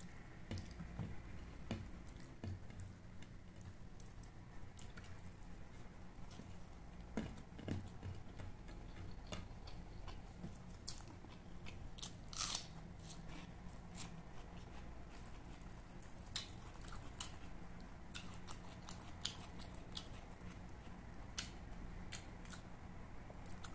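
Food squishes and tears between fingers.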